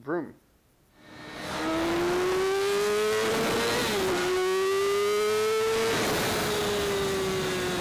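A motorcycle engine revs up, rising in pitch, drops briefly as it shifts gear, then climbs again.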